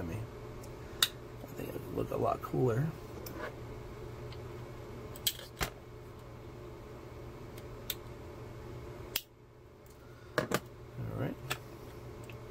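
Small metal tools click and tap on a hard surface.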